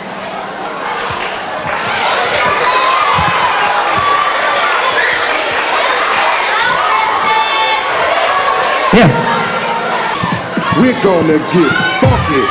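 A large crowd of children cheers and shouts loudly in an echoing hall.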